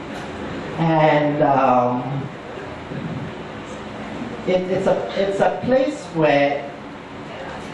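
A middle-aged man speaks calmly into a microphone, heard through loudspeakers in an echoing room.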